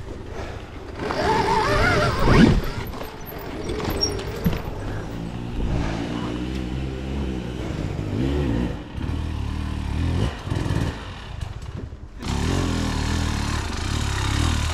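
A dirt bike engine revs and growls, rising and falling in pitch.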